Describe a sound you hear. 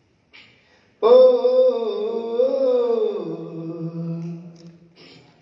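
A young man sings a long, sustained line into a microphone over loudspeakers.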